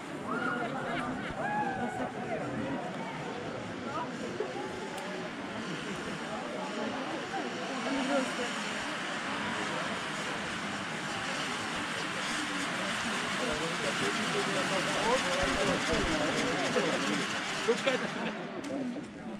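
A ground fountain firework hisses and crackles.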